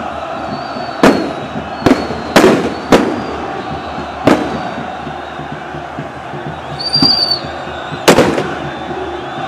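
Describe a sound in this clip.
Firecrackers bang loudly, echoing across a large open stadium.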